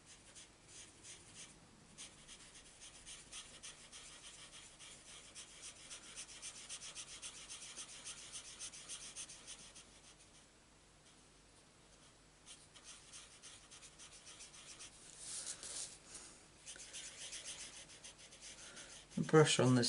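A marker scratches softly across paper in quick strokes.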